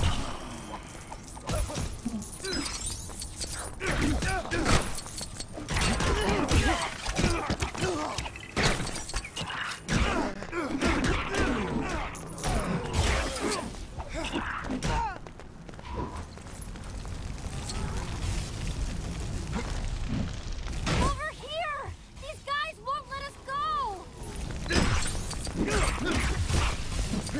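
Blasts and impacts thud and crash repeatedly.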